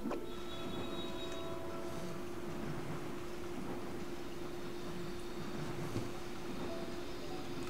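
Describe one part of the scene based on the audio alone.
Magical wind effects whoosh and swirl.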